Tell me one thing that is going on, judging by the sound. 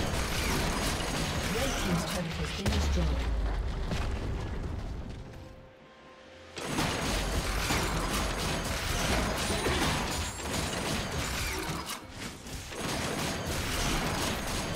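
Magic blasts and weapon hits crackle and boom in a fast fight.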